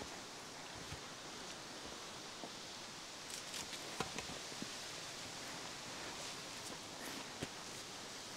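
Footsteps tread softly on a dirt path.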